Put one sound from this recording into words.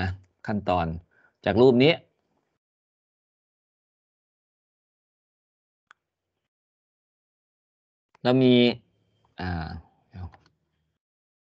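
A man speaks calmly through an online call, pausing between phrases.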